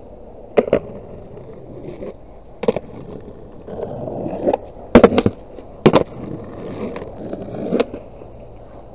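Skateboard wheels roll over rough asphalt.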